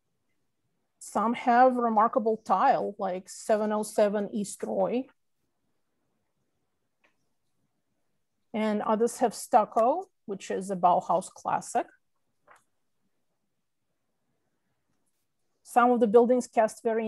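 A woman talks calmly over an online call, pausing between phrases.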